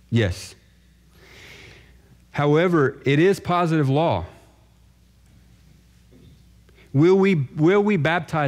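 A man speaks calmly into a microphone, his voice carrying in a large room.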